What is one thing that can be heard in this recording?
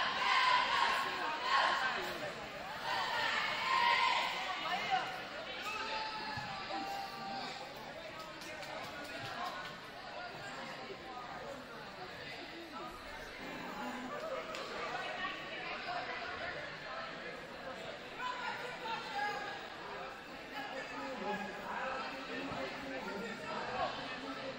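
A crowd murmurs and chatters throughout a large echoing gym.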